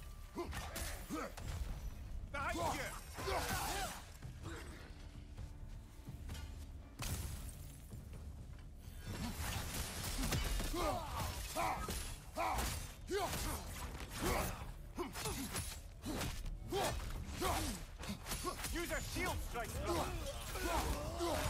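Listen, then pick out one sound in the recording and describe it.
An axe thuds against an armoured foe.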